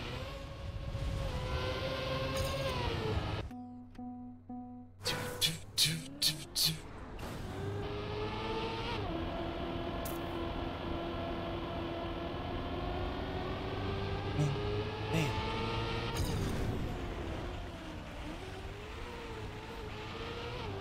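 A racing car engine whines and revs up and down.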